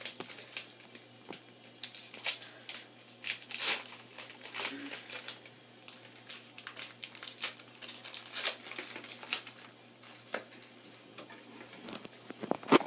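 A plastic wrapper crinkles and rustles as hands tear it open.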